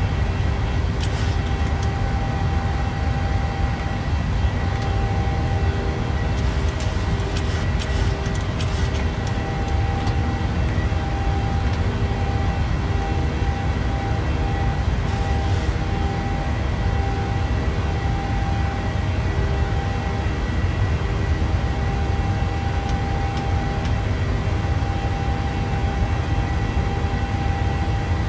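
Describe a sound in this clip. Jet engines hum and roar steadily.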